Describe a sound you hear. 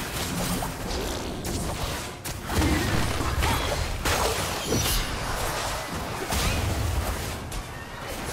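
Spell effects whoosh and burst in quick succession.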